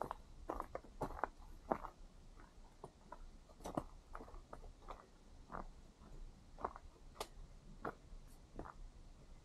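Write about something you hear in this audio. Footsteps crunch on a rocky dirt trail at a steady walking pace.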